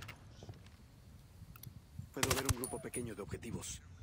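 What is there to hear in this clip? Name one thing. A suppressed rifle fires a shot.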